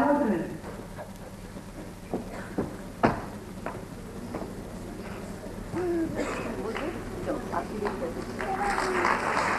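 A woman speaks through a microphone and loudspeaker in a large hall.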